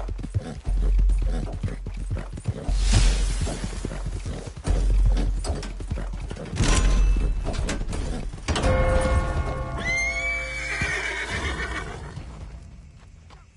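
A horse gallops with heavy, rapid hoofbeats.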